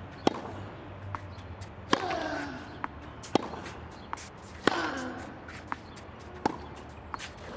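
Tennis balls are struck hard with rackets in a steady rally.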